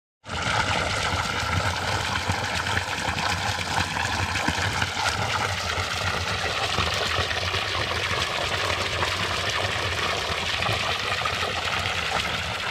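Water gushes from a spout and splashes steadily into a trough close by.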